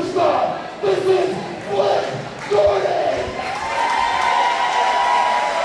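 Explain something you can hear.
A large crowd chants loudly in rhythm in an echoing hall.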